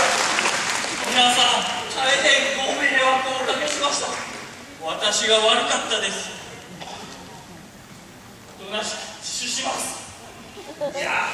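A man speaks with animation through a loudspeaker in an echoing hall.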